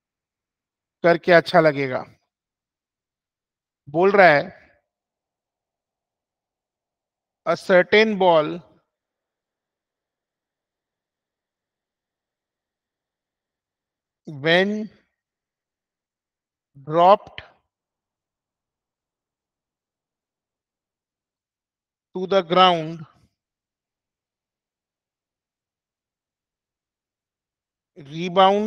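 A young man speaks calmly into a microphone in short phrases with long pauses, heard as if through an online call.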